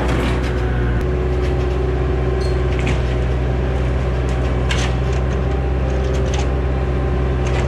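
Sheet metal and timber crunch and clatter as a loader pushes into a collapsed roof.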